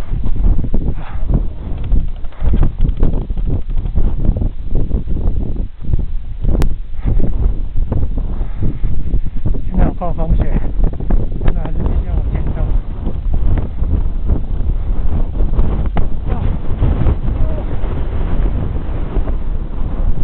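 Strong wind gusts and roars against the microphone outdoors.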